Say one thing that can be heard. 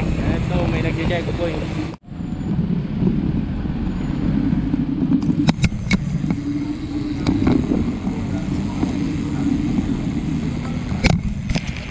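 Wind rumbles loudly against the microphone while cycling outdoors.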